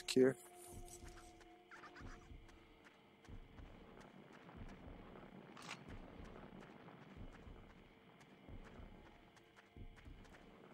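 Heavy footsteps thud slowly and steadily on the ground.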